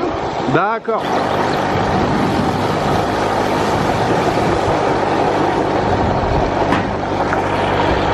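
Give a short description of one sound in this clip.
Wind rushes loudly past while riding outdoors.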